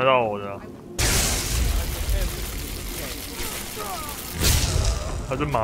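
Electricity crackles and sizzles loudly.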